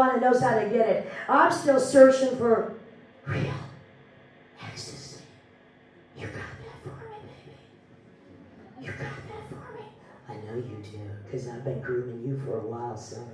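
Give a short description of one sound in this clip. A young woman sings into a microphone, heard through loudspeakers.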